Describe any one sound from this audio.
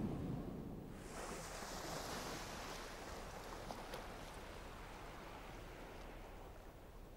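Waves wash gently over a sandy shore.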